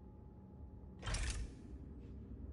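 A short chime rings once.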